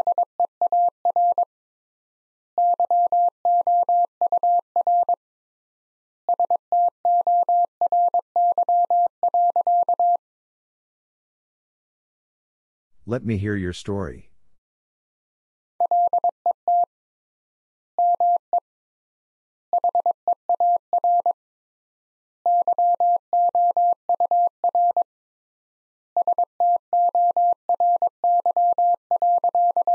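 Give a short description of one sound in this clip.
A telegraph key taps out rapid, steady beeping code.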